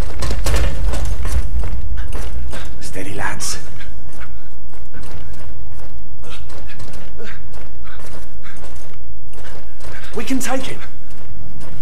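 Metal armour clanks and scrapes as heavy footsteps move about.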